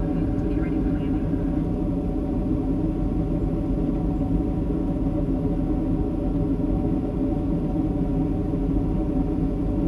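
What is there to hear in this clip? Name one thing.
A jet airliner's engines roar steadily, heard from inside the cabin.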